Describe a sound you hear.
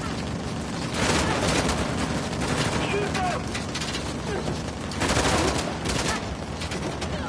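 Gunfire rattles in loud bursts.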